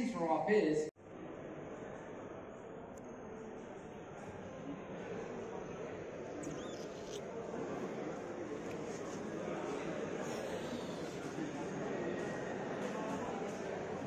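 A murmur of many people chatters in a large echoing lobby.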